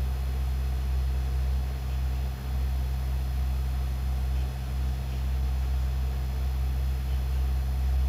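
A thick sauce simmers and bubbles gently in a pan.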